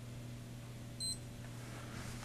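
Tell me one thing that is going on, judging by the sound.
An electronic meter beeps once, briefly.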